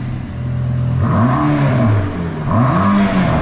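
A sports car engine revs up loudly in quick bursts.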